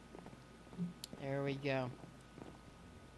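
An elderly woman speaks calmly into a microphone, close by.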